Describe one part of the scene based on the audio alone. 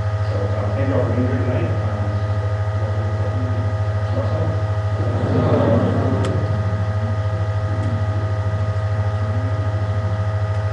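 A middle-aged man speaks calmly into a microphone over a loudspeaker.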